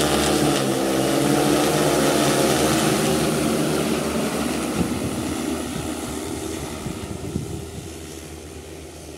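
A drone's rotors buzz loudly overhead, then fade as it flies away.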